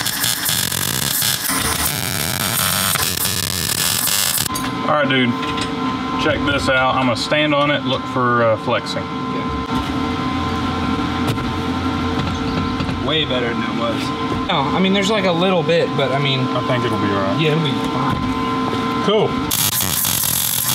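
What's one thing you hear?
An arc welder crackles and sizzles loudly.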